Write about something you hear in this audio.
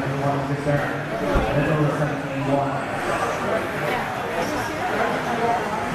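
Electric radio-controlled buggies whine across a dirt track in a large echoing hall.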